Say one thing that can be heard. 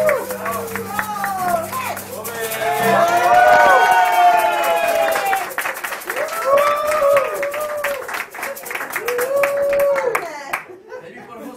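Audience members clap along in rhythm.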